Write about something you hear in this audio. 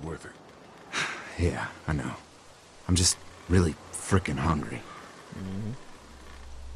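A second man answers quietly and hesitantly.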